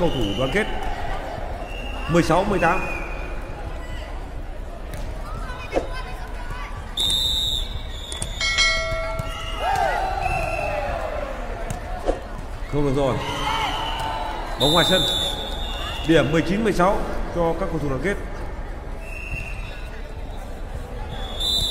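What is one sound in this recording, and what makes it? Young women shout and call out to each other in a large echoing hall.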